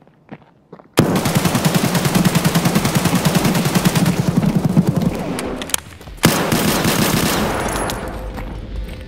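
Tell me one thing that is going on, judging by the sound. A rifle fires rapid bursts, loud and echoing in a small room.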